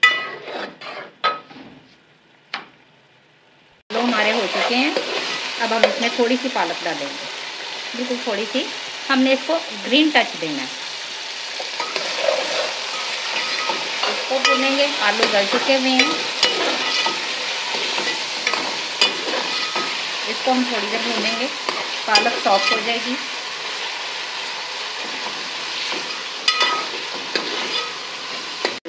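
Wet food squelches as a ladle stirs it.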